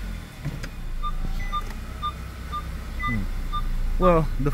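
A car's warning chime beeps at a steady pace.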